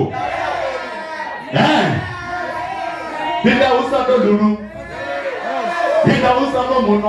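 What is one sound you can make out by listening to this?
A young man raps rhythmically into a microphone, heard through loudspeakers.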